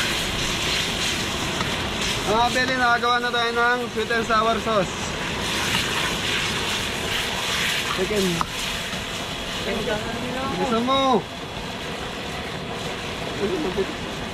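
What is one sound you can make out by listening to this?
A metal ladle stirs and scrapes in a wok.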